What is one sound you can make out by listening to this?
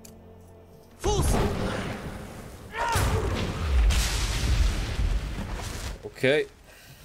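A magical blast bursts with a loud rushing whoosh and rumble.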